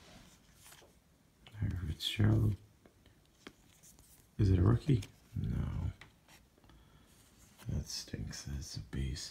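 Glossy trading cards slide and flick against each other close by.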